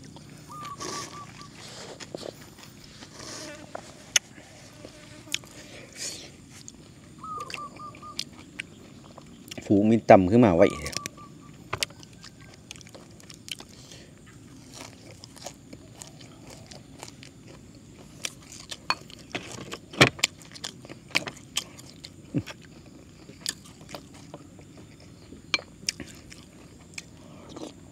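A man slurps and chews food loudly close by.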